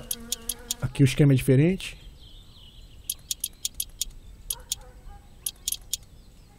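A wrench clicks sharply as bolts are tightened.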